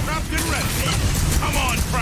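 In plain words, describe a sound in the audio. A gun fires in bursts.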